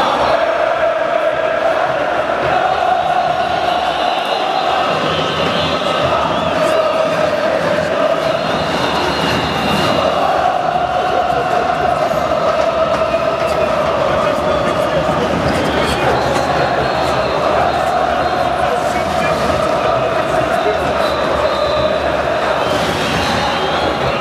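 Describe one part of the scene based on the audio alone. A large stadium crowd of fans chants in unison outdoors.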